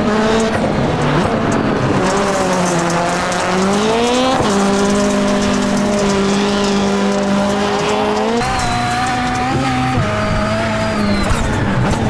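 A racing car engine roars loudly, its pitch rising and falling with gear changes.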